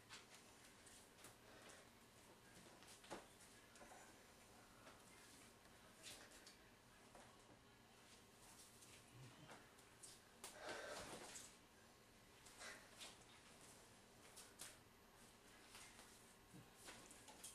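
Hands slap against arms and bodies in quick bursts.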